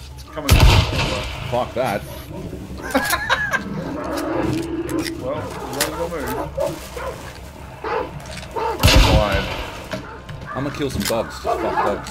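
A rifle's bolt clicks and clacks as it is worked.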